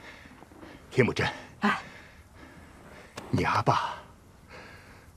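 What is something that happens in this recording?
A man speaks sternly up close.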